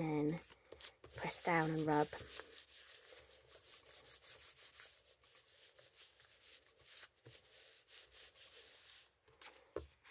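Hands rub and smooth a sheet of paper with a soft swishing.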